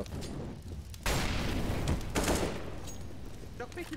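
A fire bursts and roars loudly.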